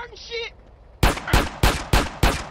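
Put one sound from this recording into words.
A pistol fires a rapid string of loud shots.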